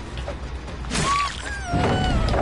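A blade strikes with a sudden sharp hit.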